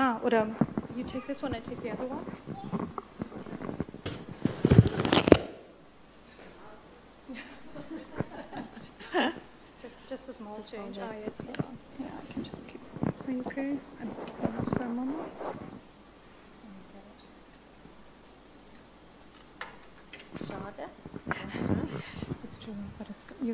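A woman speaks through a microphone.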